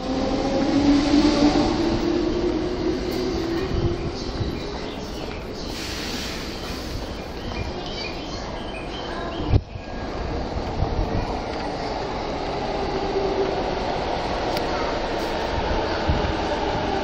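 A train rumbles and clatters along the tracks.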